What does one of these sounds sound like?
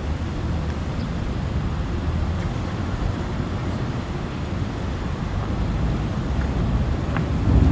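A car drives slowly by nearby.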